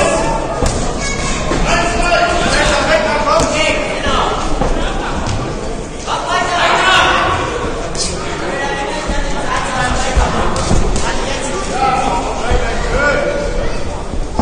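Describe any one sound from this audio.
A crowd of men shouts and calls out in a large echoing hall.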